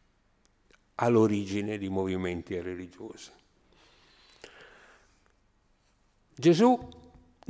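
An elderly man speaks calmly and with pauses into a microphone.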